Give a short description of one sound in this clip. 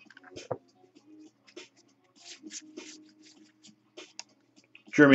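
Trading cards slide and rustle between hands, close by.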